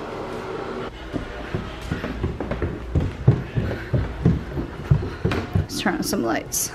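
Footsteps thud on stairs.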